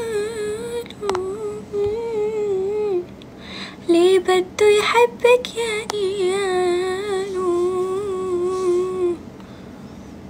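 A young woman sings close by.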